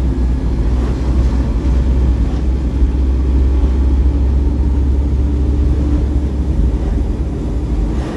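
Oncoming vehicles whoosh past.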